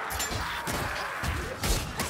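A sword slashes and clangs against enemies.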